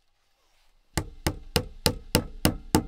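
A knife shaves wood in quick, sharp strokes.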